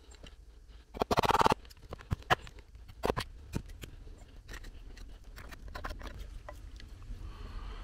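A knife shaves and scrapes along a stick of wood.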